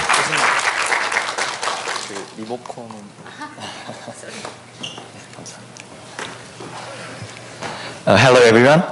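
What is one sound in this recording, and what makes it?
A young man speaks calmly through a microphone in a large echoing hall.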